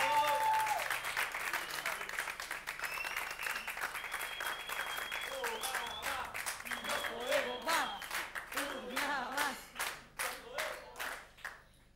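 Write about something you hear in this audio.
A man sings into a microphone.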